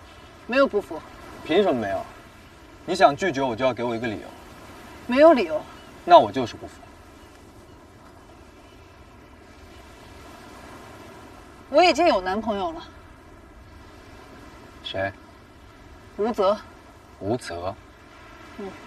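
A young man speaks calmly and closely.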